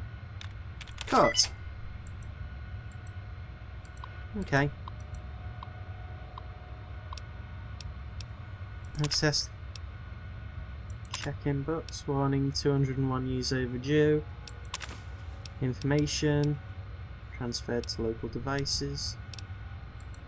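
A computer terminal beeps and chirps as text prints out.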